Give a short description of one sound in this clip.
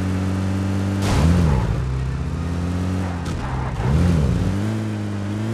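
A vehicle thumps and bumps over rough ground.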